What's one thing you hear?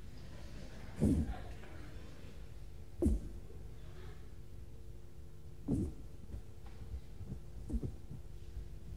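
Feet thump heavily on a wooden stage.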